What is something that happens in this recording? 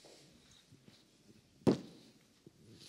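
Something is set down on a table with a sharp knock.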